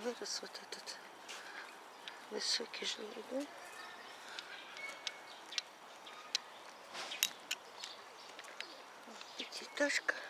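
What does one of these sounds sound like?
Birds chirp and call outdoors.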